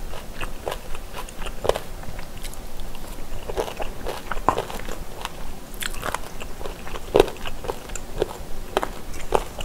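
A young woman chews and slurps noodles loudly, close to a microphone.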